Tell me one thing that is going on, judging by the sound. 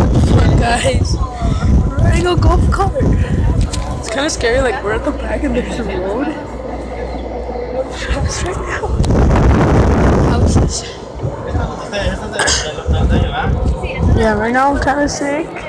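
A young boy talks excitedly close by.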